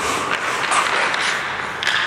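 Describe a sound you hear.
A hockey stick slaps a puck on the ice.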